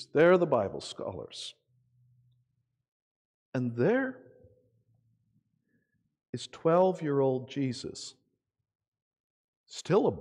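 A man speaks with animation into a microphone, pausing between phrases.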